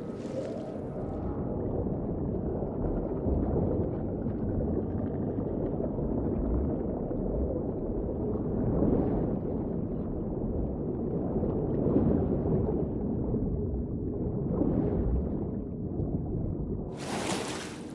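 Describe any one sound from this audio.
Water rumbles and gurgles, muffled as if heard underwater.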